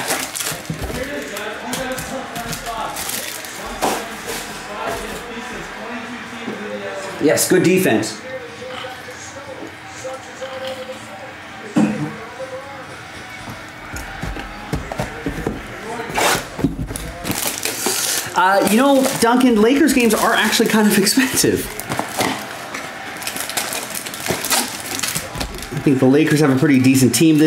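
Card packs tap and shuffle against each other.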